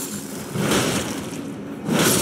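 Crystal shards shatter and scatter with a glassy crash.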